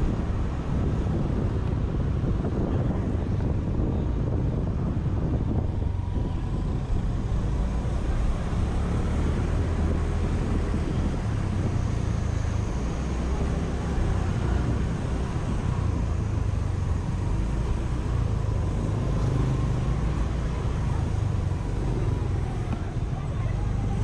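Scooters and cars drive by on a busy street.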